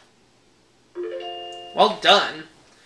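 A short electronic chime plays from a game.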